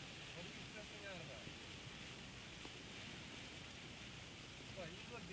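Heavy rain pounds steadily on a car's roof and windshield.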